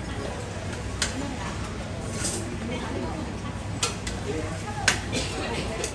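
Utensils and cups clink and clatter.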